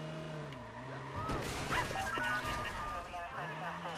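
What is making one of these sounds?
A car crashes into a low wall with a loud thud.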